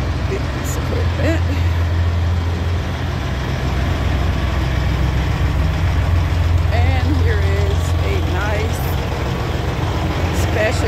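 A large truck engine idles nearby with a steady low rumble.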